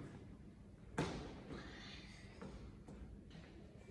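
A child's feet thump on hard steps.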